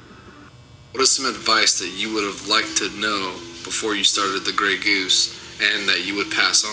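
A man's voice plays through a small phone speaker.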